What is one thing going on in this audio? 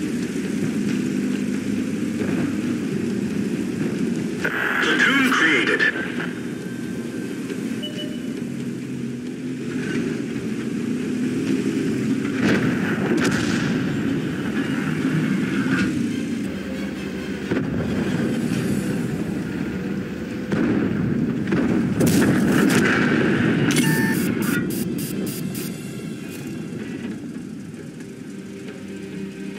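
A tank engine rumbles steadily as the tank drives over sand.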